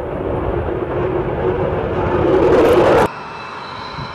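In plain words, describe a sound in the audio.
A twin-engine jet fighter roars at full power as it climbs away.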